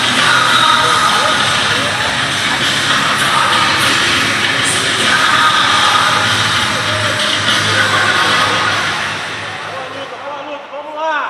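A crowd noisily cheers and chatters in a large echoing hall.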